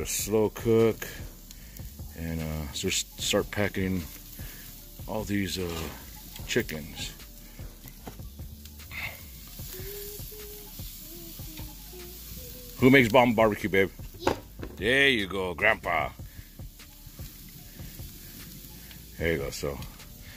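A wood fire crackles under a grill.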